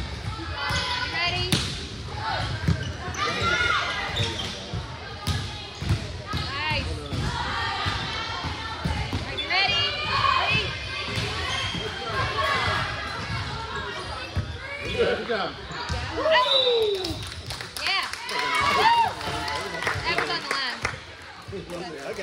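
Young women and girls shout and call out to each other in a large echoing gym.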